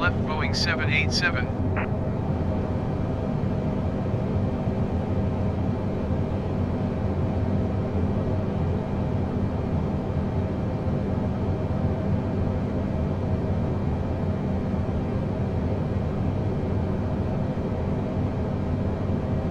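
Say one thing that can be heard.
Airliner jet engines drone steadily, heard from inside the cockpit.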